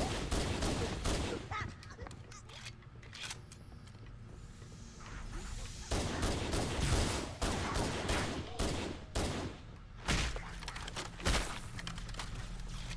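Gunfire from a game pistol cracks in sharp bursts.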